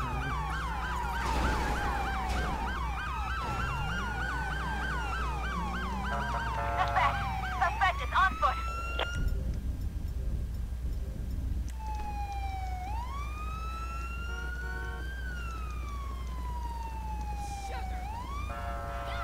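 A police siren wails, rising and falling.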